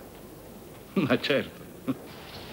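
A man speaks softly and warmly, close by.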